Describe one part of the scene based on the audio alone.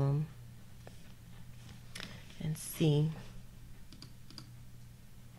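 A coloured pencil scratches softly on paper.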